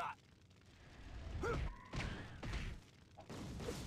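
A heavy stone creature pounds with deep thuds.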